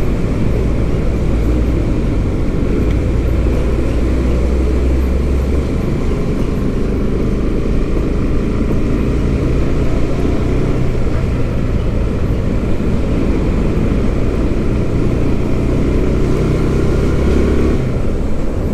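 A large engine rumbles steadily close by.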